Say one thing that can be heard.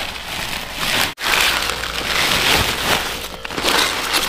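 Leafy greens rustle and crackle as a hand pushes them into a woven plastic sack.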